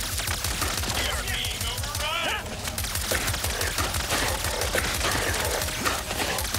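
Rapid blaster shots fire in quick bursts.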